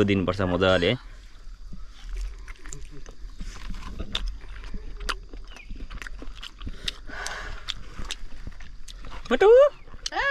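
A man chews food noisily with his mouth close up.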